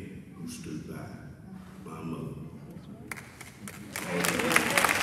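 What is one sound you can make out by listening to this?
A man speaks calmly into a microphone over loudspeakers in a large hall.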